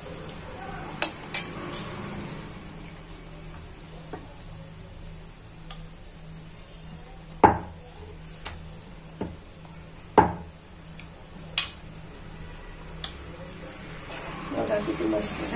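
Hot oil sizzles steadily in a pan.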